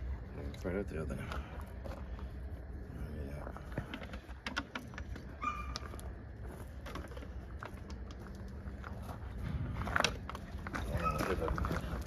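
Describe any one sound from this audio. Plastic bottles crinkle and knock as they are handled.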